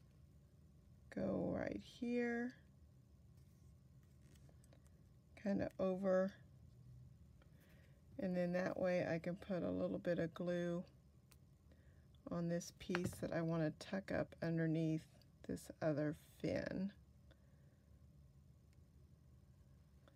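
Paper rustles softly as fingers press a cut-out into place.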